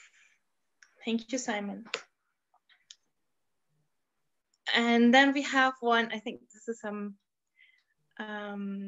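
A woman speaks over an online call.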